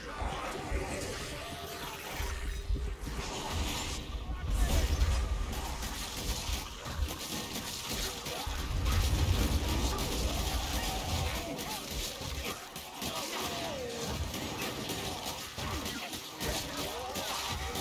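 A horde of rat creatures squeals and shrieks.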